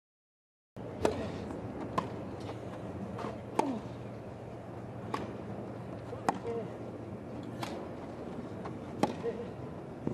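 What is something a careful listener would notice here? Tennis balls are struck with sharp pops, back and forth, in a rally.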